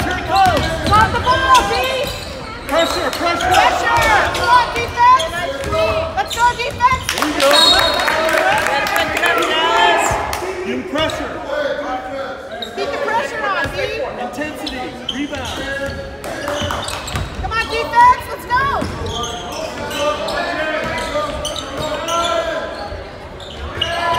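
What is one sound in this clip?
A basketball bounces on a hardwood court.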